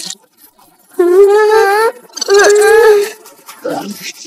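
A cartoon character speaks in a high, excited voice.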